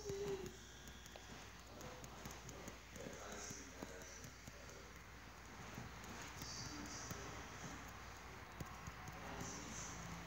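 Wooden blocks are placed with soft tapping clicks.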